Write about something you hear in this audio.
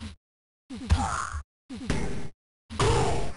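Punches thud against a boxer.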